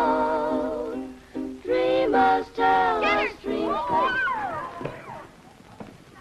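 Young girls sing together in high voices.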